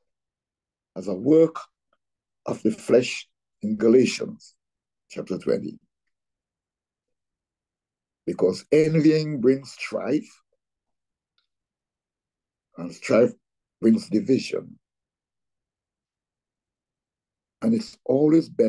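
An elderly man speaks calmly in short phrases with pauses, close to the microphone as if on an online call.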